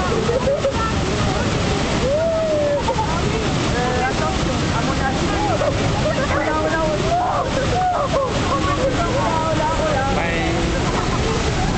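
Water gushes and roars loudly through a sluice, churning and splashing.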